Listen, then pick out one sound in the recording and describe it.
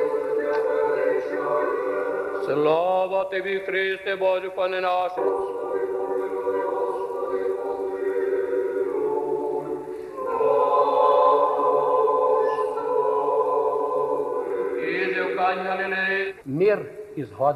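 A choir sings in a large echoing hall.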